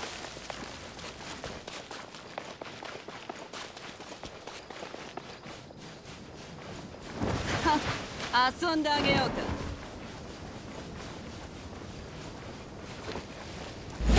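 Quick footsteps crunch on snow.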